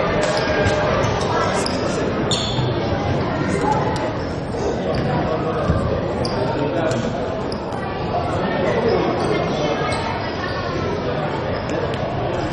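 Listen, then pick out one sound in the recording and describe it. A volleyball is struck hard with a hand.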